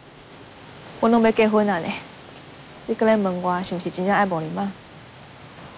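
A young woman speaks in an upset tone, close by.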